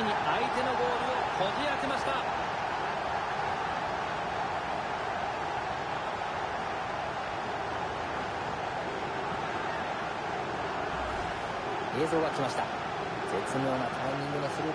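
A large crowd roars and cheers in a big stadium.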